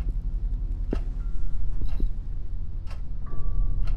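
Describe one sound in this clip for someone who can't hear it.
Footsteps tread across a floor.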